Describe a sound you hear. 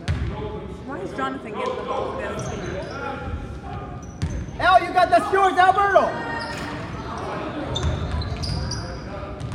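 Young players and spectators call out and chatter.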